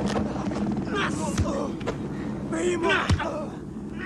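A man speaks tensely up close.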